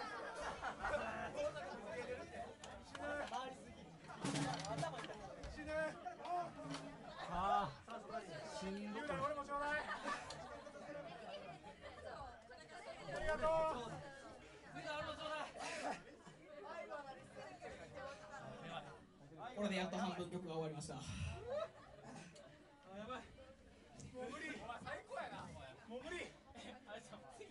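A crowd of young men shouts and cheers close by, echoing in a room.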